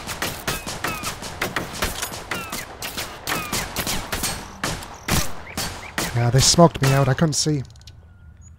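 Rapid gunshots crack close by.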